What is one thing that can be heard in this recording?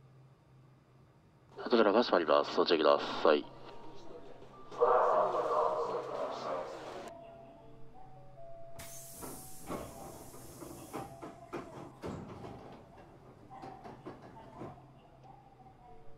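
A stopped electric train hums quietly while idling.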